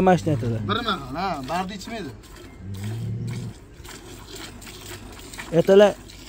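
Milk squirts into a bowl in short spurts.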